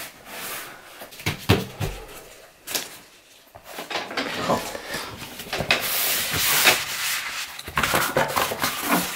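A man snaps foam floor tiles together.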